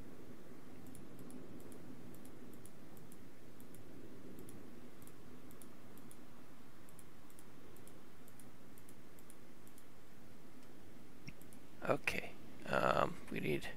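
Soft interface clicks tick as items are moved.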